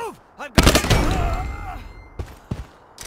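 A gun fires a loud burst of shots.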